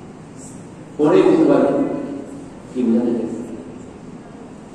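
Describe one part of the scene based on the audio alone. A young man speaks into a microphone through a loudspeaker in an echoing room.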